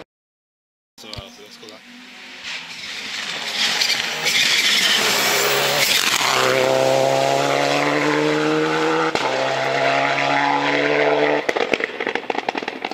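A second rally car engine approaches, screams past close by and revs away.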